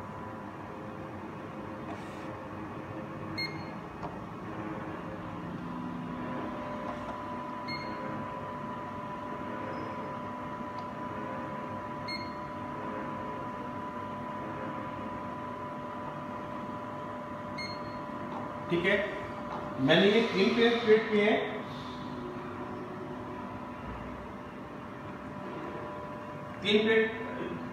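A machine hums steadily.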